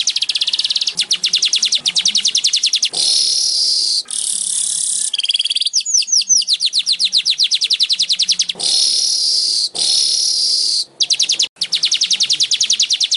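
A small bird sings close by in rapid, high buzzing trills and chatters.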